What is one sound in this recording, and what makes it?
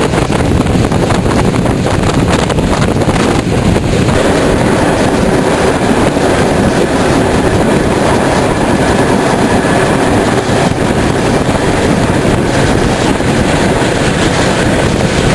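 Wind rushes loudly past an open train window.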